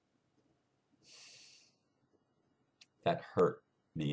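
An older man speaks close to a microphone, calmly and with pauses.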